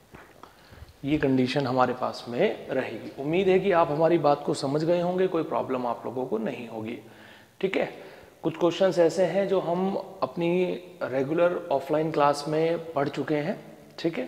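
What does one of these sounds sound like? A young man lectures with animation, close to a microphone.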